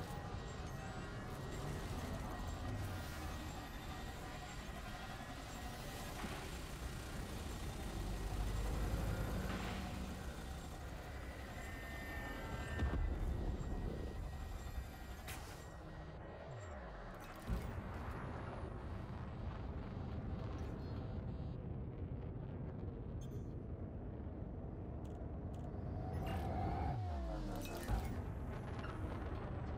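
A spaceship engine hums steadily.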